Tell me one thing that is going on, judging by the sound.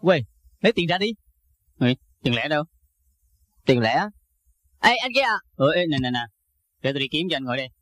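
A young man answers quickly, close by.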